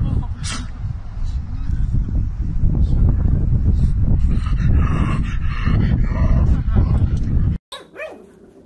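A pug pants and snorts outdoors.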